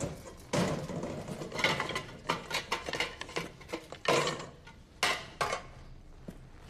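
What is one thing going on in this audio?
Metal pots and utensils clatter and clink.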